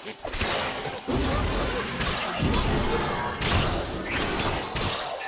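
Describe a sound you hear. A deep rumbling blast rolls out.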